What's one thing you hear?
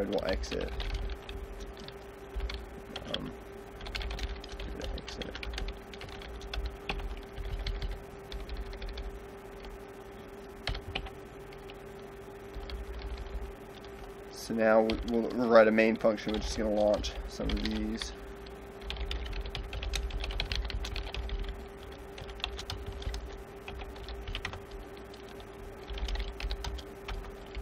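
Keys clack on a computer keyboard in quick bursts.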